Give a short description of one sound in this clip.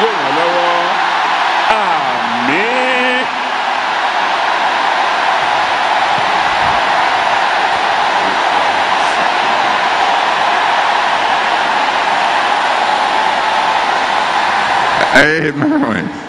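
A large crowd cheers and shouts loudly in a big hall.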